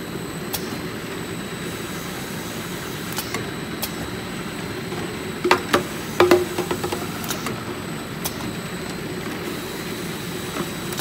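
Plastic jugs knock and clatter against each other on a conveyor.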